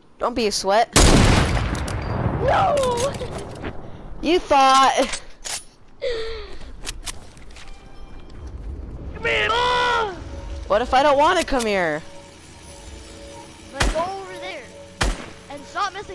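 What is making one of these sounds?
A gun fires sharp single shots.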